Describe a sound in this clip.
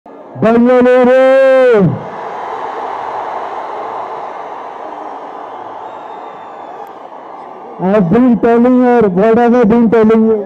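A young man sings loudly into a microphone over loudspeakers.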